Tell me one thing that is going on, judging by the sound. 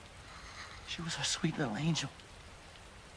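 A middle-aged man speaks in a grieving, shaky voice.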